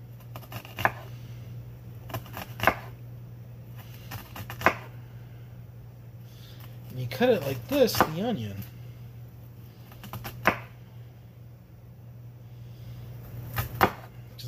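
A knife slices through an onion and knocks on a wooden board.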